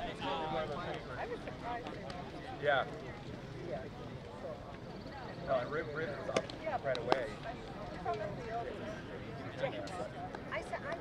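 Spectators and players chatter and call out nearby outdoors.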